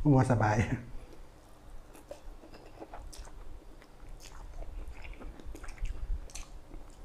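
A man chews and slurps noodles noisily close to a microphone.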